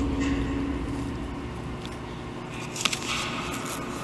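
A man bites into a crisp apple with a crunch.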